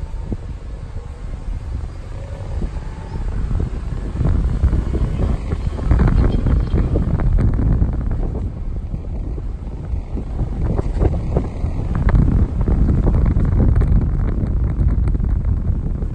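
Palm fronds and leaves rustle in the wind.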